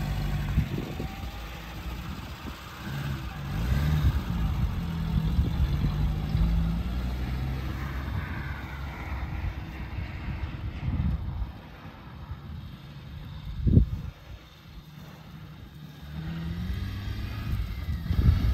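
A small engine revs and idles as a vehicle drives across grass.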